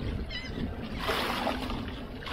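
Water splashes beside a boat.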